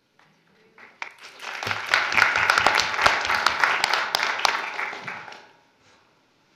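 A small audience applauds in a room.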